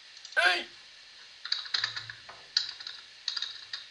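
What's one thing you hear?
Pool balls click against each other in a computer game.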